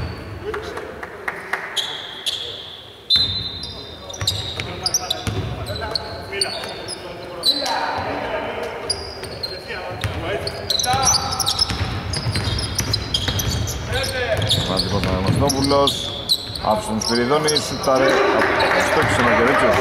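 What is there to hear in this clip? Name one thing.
Sneakers squeak sharply on a hardwood court in an echoing hall.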